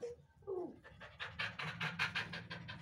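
A dog pants rapidly.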